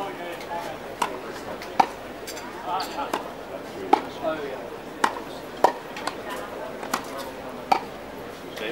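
A tennis racket strikes a ball with sharp pops, again and again.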